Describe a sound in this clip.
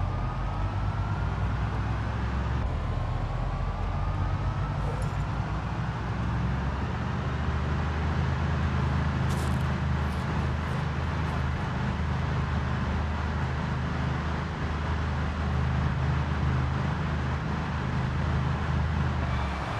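A truck engine rumbles steadily on a highway.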